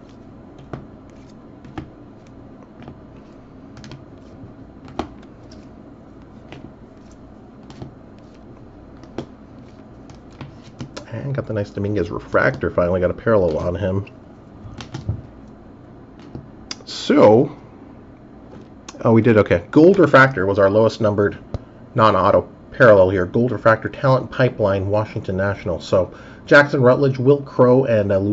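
Plastic card cases click and tap as they are handled.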